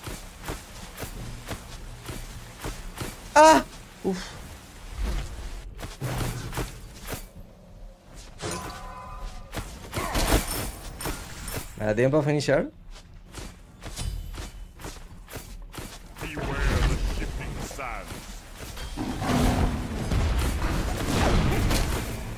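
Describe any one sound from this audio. Game combat effects clash and thump.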